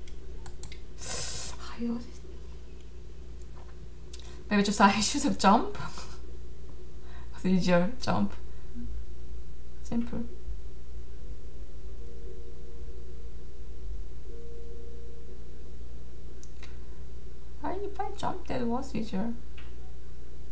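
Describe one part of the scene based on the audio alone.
A young woman speaks now and then into a close microphone.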